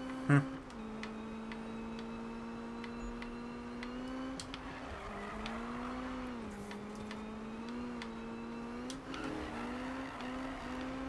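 A car engine drones steadily, its pitch rising and falling as the car drifts.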